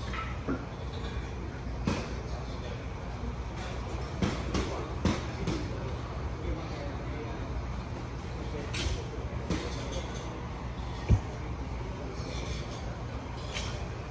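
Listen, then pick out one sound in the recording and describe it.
A man's body shifts on a bench with soft knocks.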